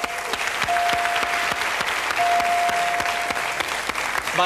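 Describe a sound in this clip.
A high electronic chime rings as letters light up on a puzzle board.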